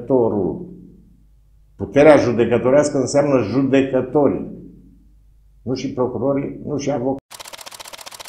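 An older man speaks calmly and expressively into a close microphone.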